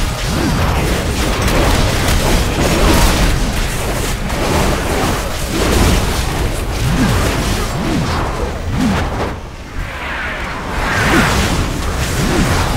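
Magic spells blast and crackle in a fast fight.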